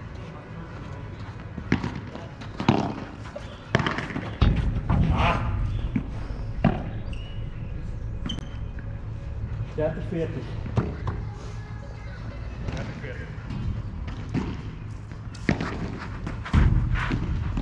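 A ball bounces on a court and off glass walls.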